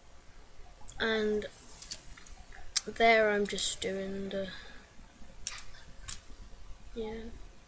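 A young girl speaks close by in short, drawn-out phrases.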